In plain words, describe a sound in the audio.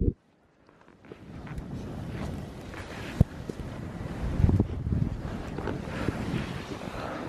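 Wind blows across an open snowy slope.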